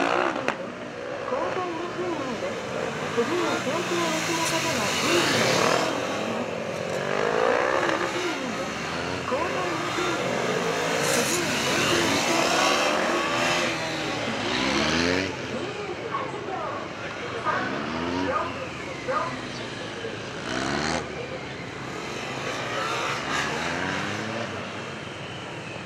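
A motorcycle engine revs up and down as the bike weaves through tight turns.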